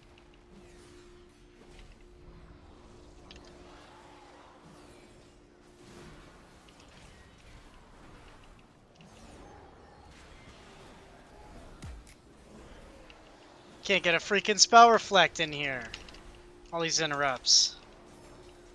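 Magic spells crackle and whoosh in a busy fantasy battle.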